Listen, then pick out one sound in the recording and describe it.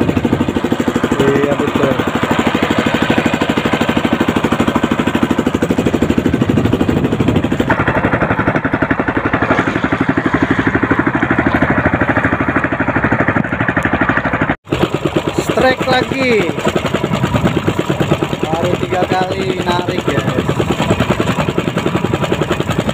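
A boat engine chugs steadily nearby.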